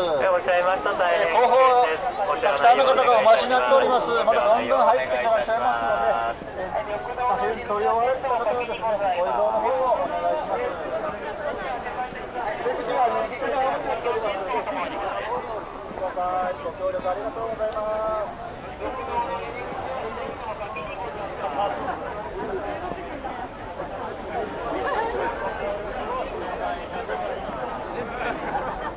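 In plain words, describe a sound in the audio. A crowd of people chatter nearby, outdoors.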